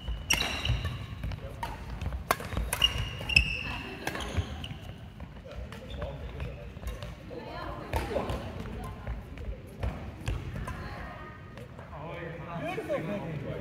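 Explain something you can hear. Shoes squeak on a wooden floor in a large echoing hall.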